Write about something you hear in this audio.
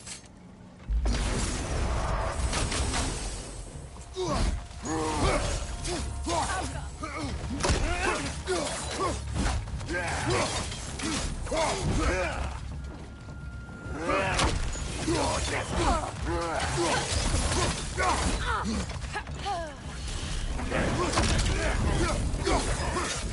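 Heavy weapons clash and strike in a close fight.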